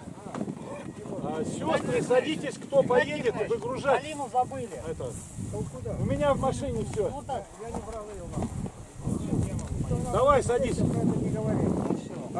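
An elderly man speaks loudly and with feeling to a crowd outdoors.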